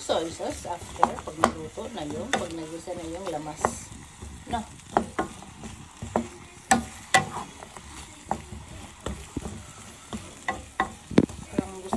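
A wooden spatula scrapes and knocks against a pan.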